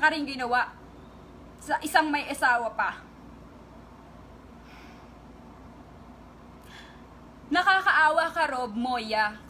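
A young woman speaks close to a phone microphone with emotion, in short bursts with pauses.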